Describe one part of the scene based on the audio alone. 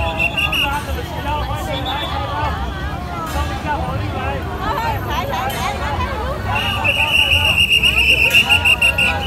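A large crowd of men and women talks and cheers loudly outdoors.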